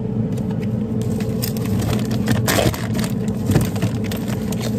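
Frozen food packages rustle and knock as a hand reaches in.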